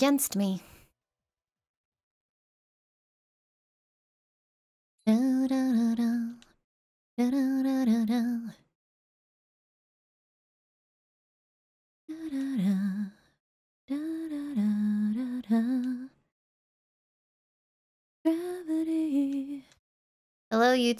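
A young woman speaks animatedly into a close microphone, in short bursts with pauses.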